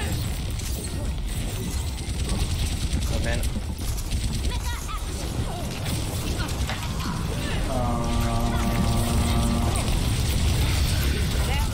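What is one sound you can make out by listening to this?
Heavy game gunfire pounds steadily.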